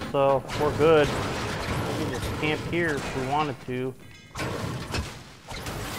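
A pickaxe strikes metal with sharp clanks.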